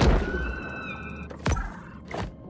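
Water swirls as a shark swims underwater.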